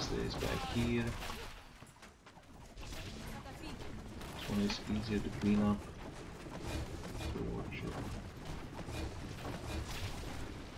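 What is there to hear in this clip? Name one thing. Swords clash in a fierce battle.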